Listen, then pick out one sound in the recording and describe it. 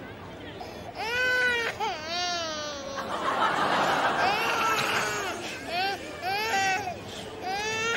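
A baby cries loudly and wails.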